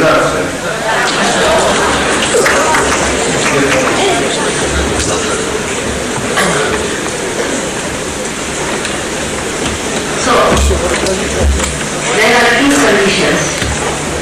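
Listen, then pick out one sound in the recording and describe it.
An elderly woman speaks calmly into a microphone, heard through a loudspeaker.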